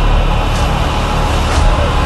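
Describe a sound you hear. A young man screams loudly.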